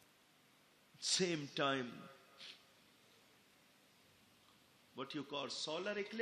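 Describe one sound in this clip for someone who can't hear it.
A man speaks slowly and solemnly into a microphone.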